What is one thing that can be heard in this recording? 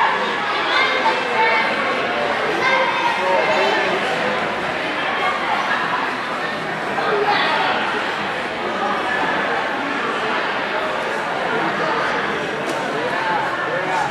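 Several men shout and call out from the sidelines.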